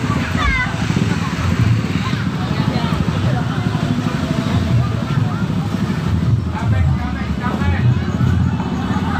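Children and adults chatter nearby.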